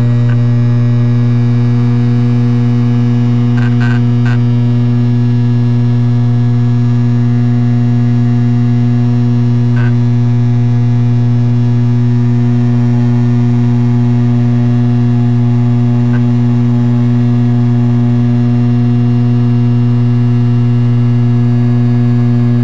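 A propeller engine drones loudly and steadily from close by.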